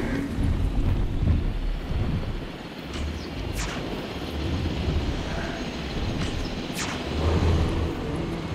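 A large dinosaur stomps heavily across the grass.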